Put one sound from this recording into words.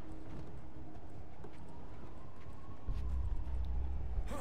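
A person climbs a metal pole with soft clanks.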